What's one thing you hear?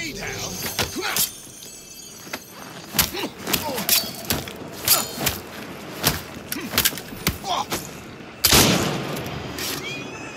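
Blades clash and hits land in a quick fight.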